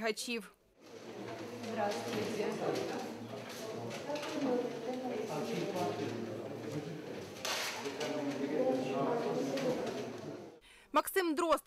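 People murmur and talk quietly in a room.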